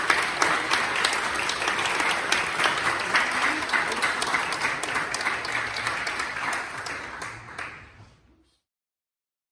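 An audience claps and cheers loudly in a large echoing hall, then fades away.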